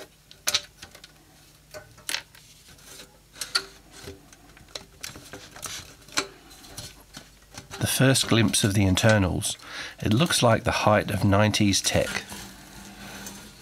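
A metal cover scrapes and rattles as it is lifted off.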